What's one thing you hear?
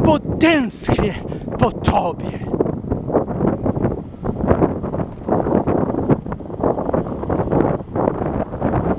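Bicycle tyres roll and rattle over a rough, patched path.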